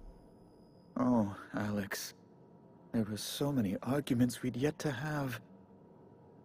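A man speaks wistfully, close to the microphone.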